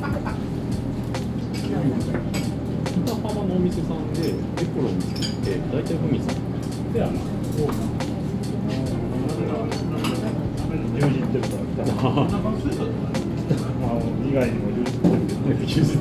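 A second man talks calmly.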